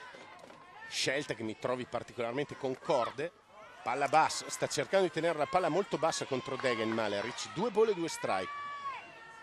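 A crowd of spectators chants and cheers loudly.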